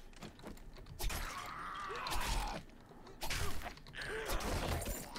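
A zombie groans and snarls up close.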